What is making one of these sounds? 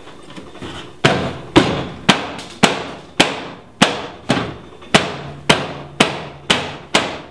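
A hammer strikes sheet metal in a quick, steady rhythm.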